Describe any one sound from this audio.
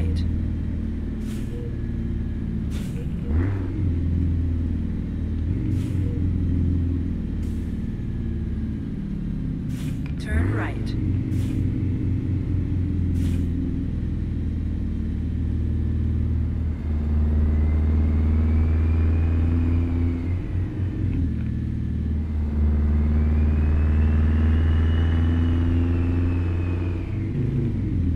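A truck engine rumbles steadily, growing louder and falling back as it drives.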